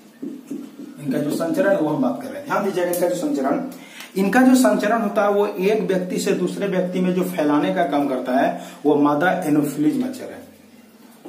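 A man speaks close by, explaining with animation.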